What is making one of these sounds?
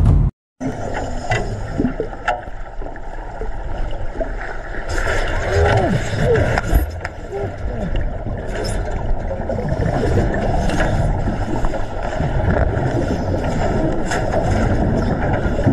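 Water churns and bubbles loudly underwater.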